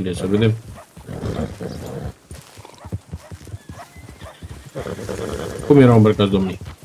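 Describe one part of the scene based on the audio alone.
A horse's hooves clop slowly on a dirt road.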